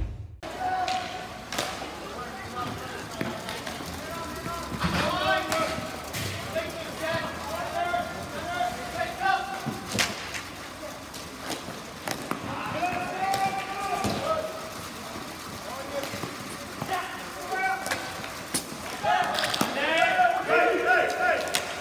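Hockey sticks clack sharply against a ball and the floor.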